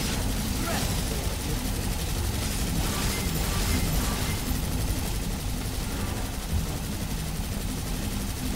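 A sword swishes and clashes in quick strikes.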